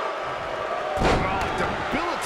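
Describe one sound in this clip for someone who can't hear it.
A wrestler stomps down with a heavy thud.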